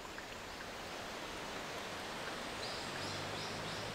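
Footsteps walk slowly along a stone path.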